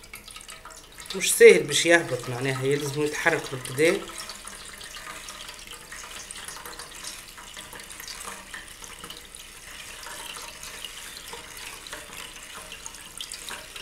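A wire whisk stirs and swishes through thin liquid in a bowl.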